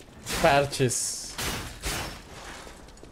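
Swords clash and swish in a fight.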